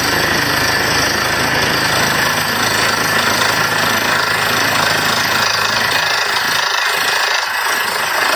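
A drilling rig's engine roars loudly and steadily outdoors.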